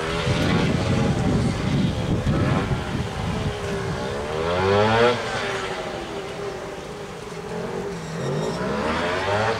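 A small motorcycle engine revs up and down as it weaves nearby.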